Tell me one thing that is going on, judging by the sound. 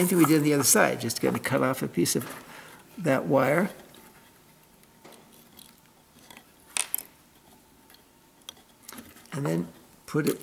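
Fine wire scrapes lightly against wood.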